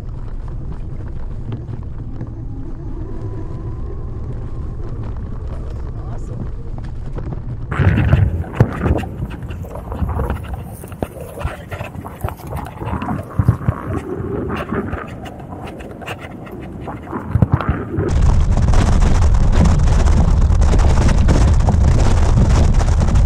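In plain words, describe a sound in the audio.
Wind rumbles and buffets against the microphone outdoors.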